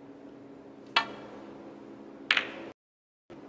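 Snooker balls knock together with sharp clicks.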